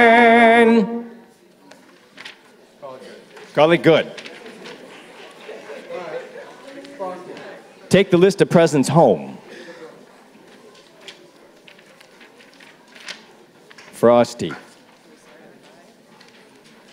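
An audience murmurs and chatters in the background.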